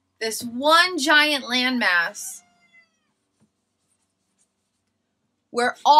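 A girl speaks with animation close by.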